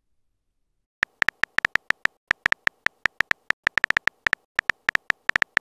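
Keyboard keys tap in quick, uneven clicks.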